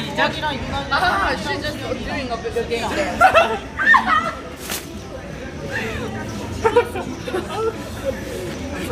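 Young men laugh and talk loudly close by.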